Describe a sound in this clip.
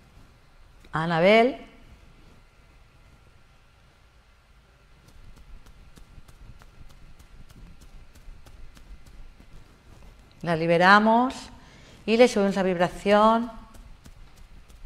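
A woman speaks calmly and close into a microphone, in short bursts with pauses.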